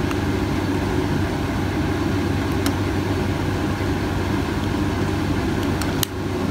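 A gas lighter flame hisses softly.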